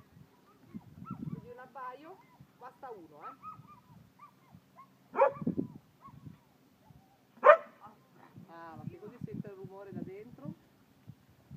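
A dog whines and yelps.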